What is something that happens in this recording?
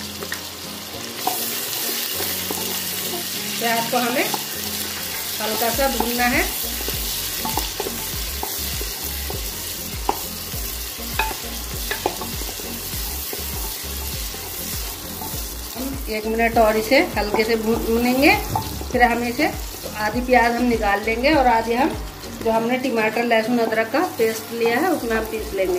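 A spatula scrapes and stirs against a metal pan.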